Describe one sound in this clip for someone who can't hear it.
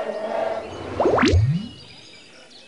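A quick whooshing sound sweeps upward.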